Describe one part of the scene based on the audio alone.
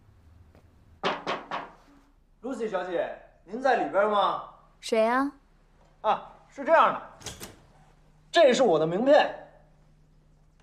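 A young man calls out from behind a door.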